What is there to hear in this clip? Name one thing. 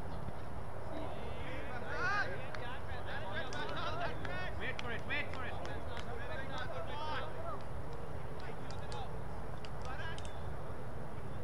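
Players shout and call out to each other from across an open field.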